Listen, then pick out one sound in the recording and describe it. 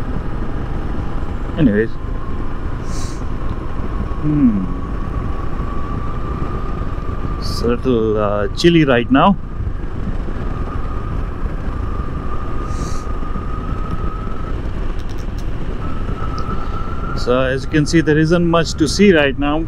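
A motorcycle engine hums steadily at speed.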